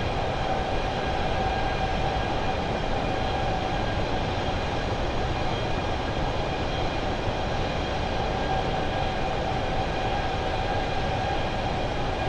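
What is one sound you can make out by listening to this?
Jet engines roar steadily with a constant whine.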